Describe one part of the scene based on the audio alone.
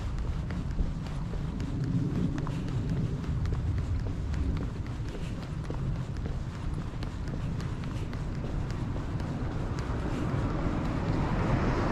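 Footsteps tap along a paved path at a walking pace.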